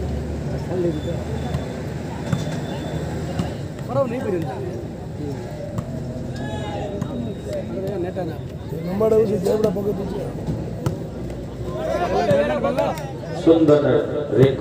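Men on a court shout to one another.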